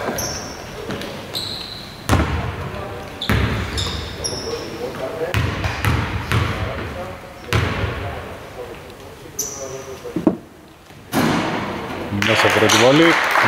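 Sneakers squeak sharply on a court floor in a large echoing hall.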